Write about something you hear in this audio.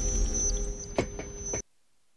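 A sharp mechanical clank rings out.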